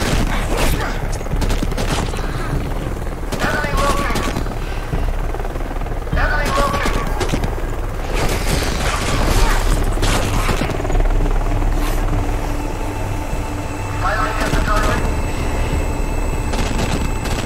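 Explosions boom with loud bangs.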